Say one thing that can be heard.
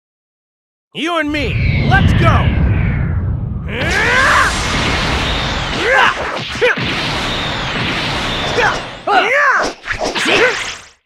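Fighters' blows land with heavy thuds and crackling bursts of energy.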